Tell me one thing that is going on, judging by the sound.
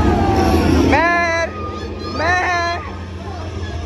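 A young child squeals and talks close by.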